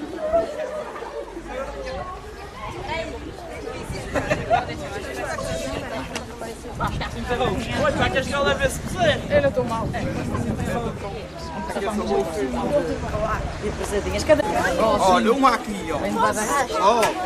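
A group of young people talk and call out close by, outdoors.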